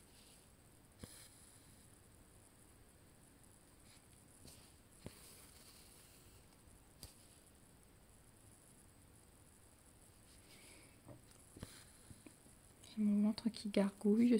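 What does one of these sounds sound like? A needle and thread rustle softly as they are pulled through fabric.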